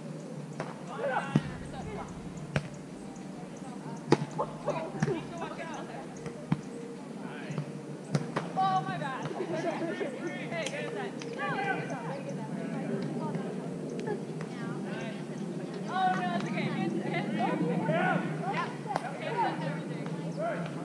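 Young women call out and talk outdoors, a little distance away.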